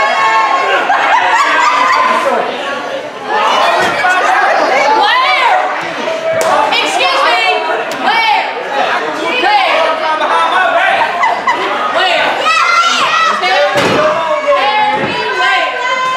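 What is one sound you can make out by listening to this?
A crowd of children and adults shouts and cheers loudly nearby.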